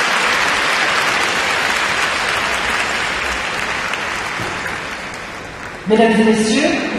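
A large crowd applauds in a big echoing arena.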